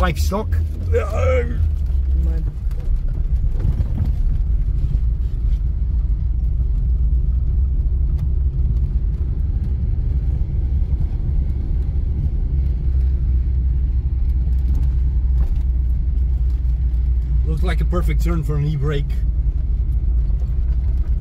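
Tyres crunch over a rough dirt road.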